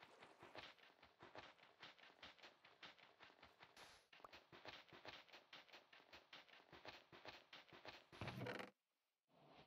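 Sand blocks crunch rapidly as they are dug away.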